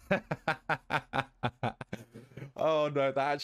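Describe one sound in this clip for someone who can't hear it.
A young man laughs loudly in short bursts, close to a microphone.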